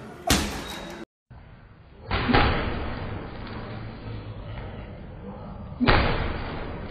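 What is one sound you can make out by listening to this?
Gloved punches thud against a heavy punching bag.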